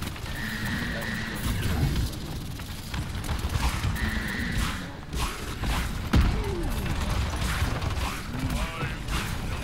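Magic effects whoosh and crackle.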